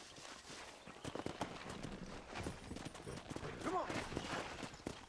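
A horse's hooves thud on the ground at a trot.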